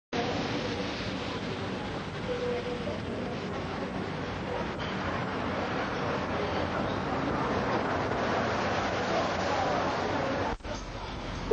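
Steel drums play a lively tune in a large echoing room.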